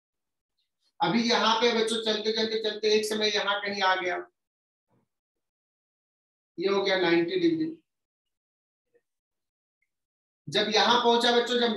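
A man explains calmly, close to a microphone, speaking in short bursts with pauses.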